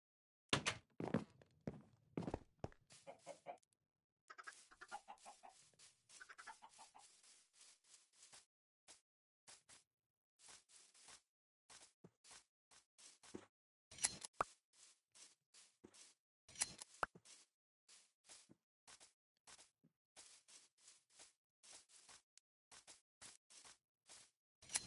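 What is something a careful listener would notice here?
Game footsteps patter on grass in a video game.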